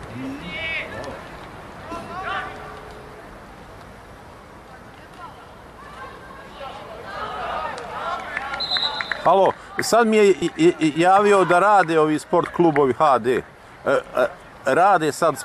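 Spectators call out from the stands in the distance outdoors.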